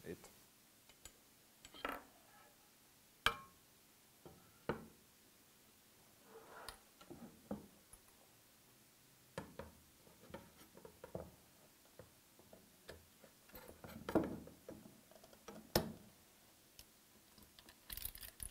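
Metal parts clack and knock against a wooden table.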